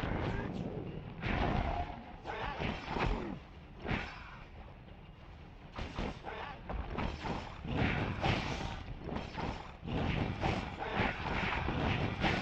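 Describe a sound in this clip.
Heavy blows and flaming strikes crash again and again in a fight.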